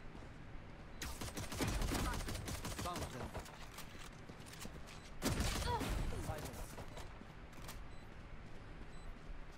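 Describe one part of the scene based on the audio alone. Shotgun blasts ring out in sharp bursts.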